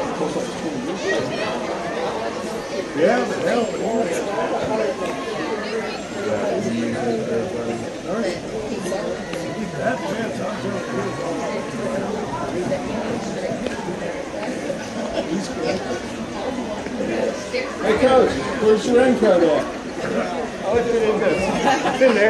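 Young women cheer and chant from a distance, outdoors.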